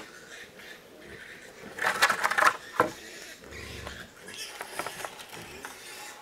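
Wooden planks knock and clatter on the ground.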